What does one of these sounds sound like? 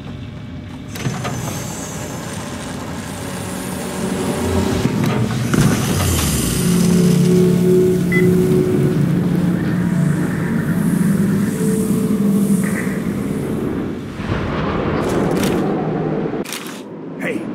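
A launch pod roars and rumbles loudly as it rushes through a tube.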